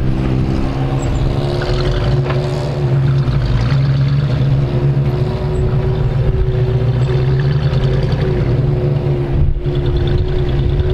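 Tyres crunch over rocks and gravel.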